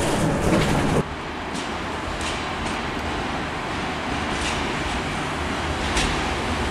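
A diesel train rumbles slowly into a station.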